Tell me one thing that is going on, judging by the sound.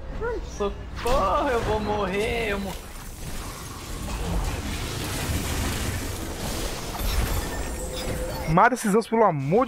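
Video game spells and blasts whoosh and boom.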